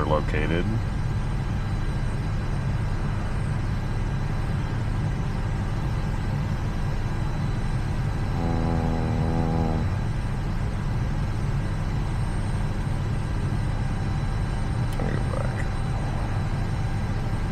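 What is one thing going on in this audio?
Aircraft systems hum low and steadily.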